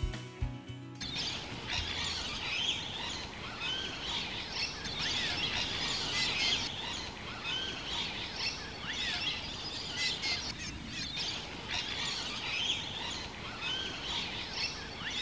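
Birds chirp and warble nearby.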